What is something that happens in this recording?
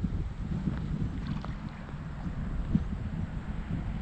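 A fishing lure plops into still water.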